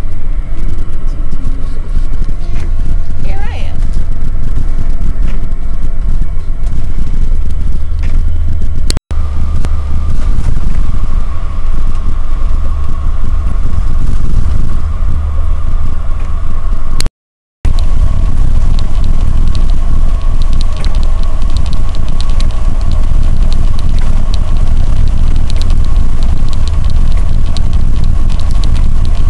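A large vehicle's engine rumbles steadily.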